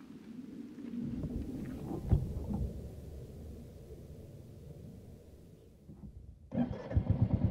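A motorcycle engine starts and idles with a low rumble.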